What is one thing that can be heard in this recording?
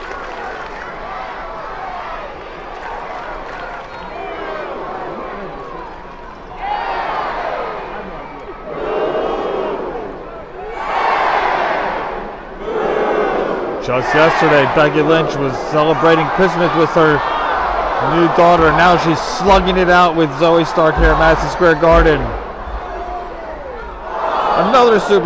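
A large crowd cheers and shouts in a large echoing arena.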